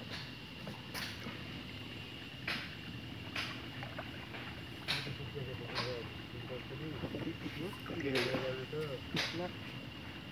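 Objects knock sharply against a wooden boat.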